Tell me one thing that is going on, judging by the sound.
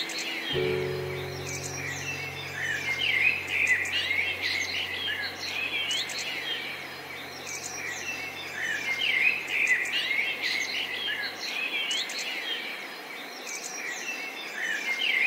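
A river flows gently.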